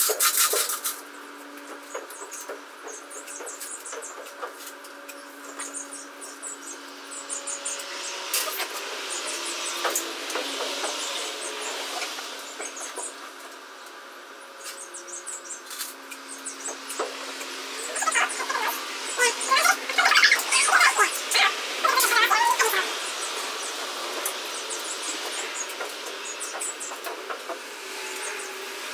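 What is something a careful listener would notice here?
A metal tool scrapes and knocks against a wooden floor.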